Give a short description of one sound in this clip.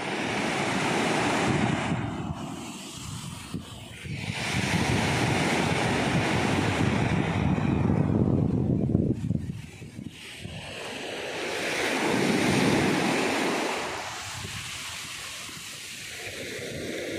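Foamy water hisses as it slides back over sand.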